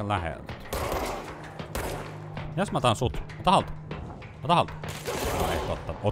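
A pistol fires in sharp bursts.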